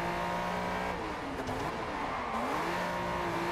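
Tyres screech briefly as a car turns hard.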